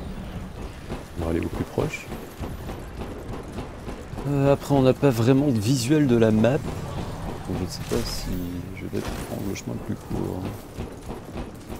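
A young man talks close to a microphone in a casual tone.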